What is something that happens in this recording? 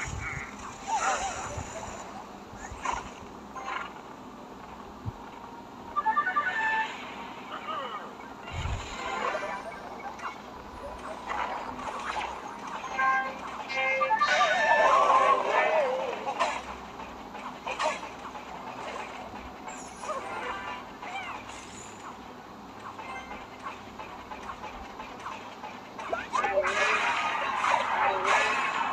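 Cartoonish battle sound effects clash, thud and zap.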